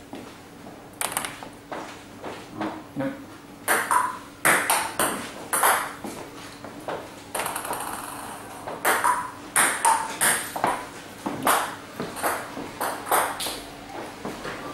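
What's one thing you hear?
A table tennis ball clicks against a bat.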